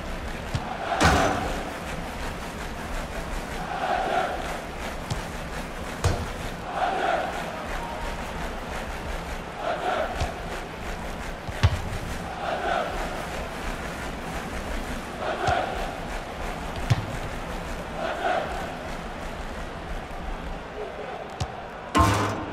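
A football is kicked with a sharp thud, several times.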